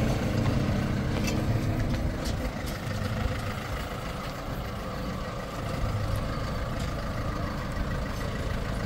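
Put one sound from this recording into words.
A pickup truck engine idles with a low, steady rumble.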